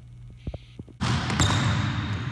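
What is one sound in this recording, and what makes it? Sneakers squeak on a hard floor in an echoing hall.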